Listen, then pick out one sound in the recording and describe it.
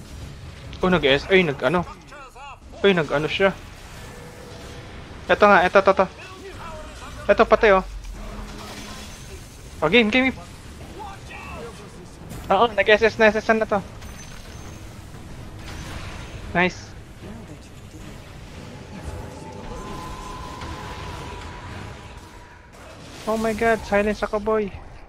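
Magic spells crackle and burst in a battle.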